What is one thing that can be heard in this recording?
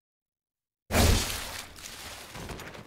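A blade slashes into flesh with a wet thud.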